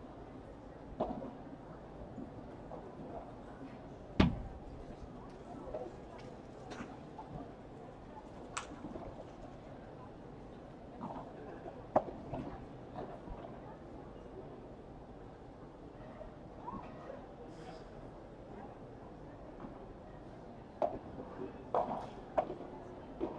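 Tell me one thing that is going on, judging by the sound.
Padel rackets hit a ball with sharp pops.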